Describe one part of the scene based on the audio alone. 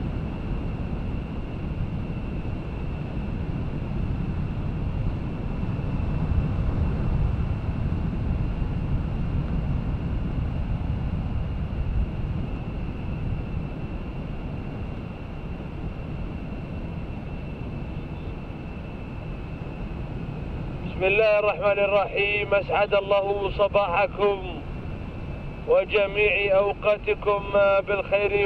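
Car engines rumble steadily nearby.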